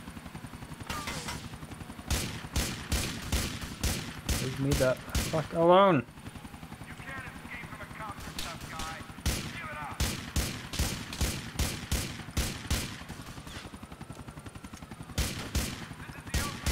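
Pistol shots ring out one after another.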